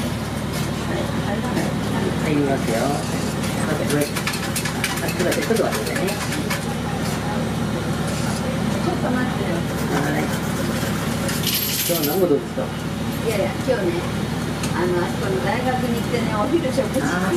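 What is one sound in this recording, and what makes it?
A bus engine idles with a low steady rumble.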